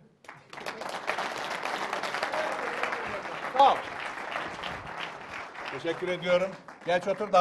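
A large audience claps and cheers.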